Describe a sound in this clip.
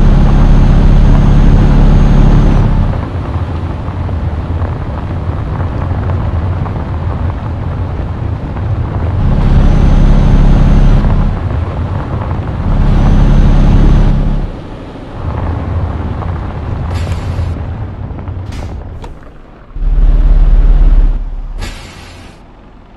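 A diesel truck engine drones and surges as the truck drives along.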